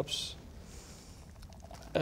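Beer pours from a can into a glass.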